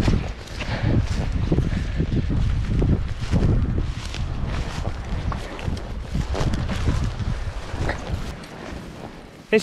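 Footsteps brush through low dry shrubs.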